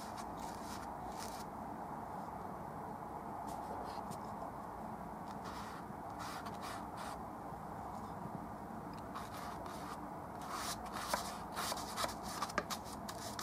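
A paintbrush dabs and scrapes paint across a canvas.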